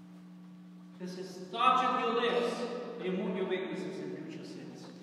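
A man chants loudly in a melodic voice, echoing in a large hall.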